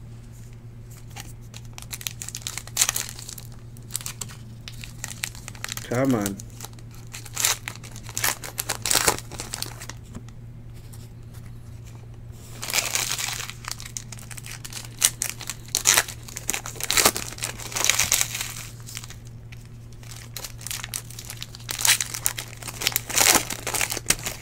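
Foil card wrappers crinkle and tear as they are ripped open.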